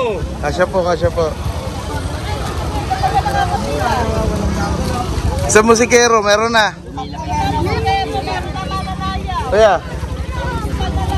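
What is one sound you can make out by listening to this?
Children chatter and call out nearby.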